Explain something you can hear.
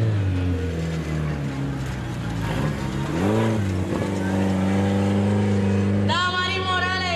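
A truck engine roars and revs close by as it drives past.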